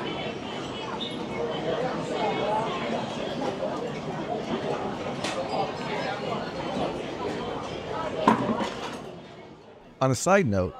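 A crowd of people chatters in a large, busy indoor hall.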